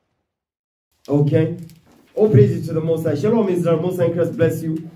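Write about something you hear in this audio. A young man speaks into a handheld microphone.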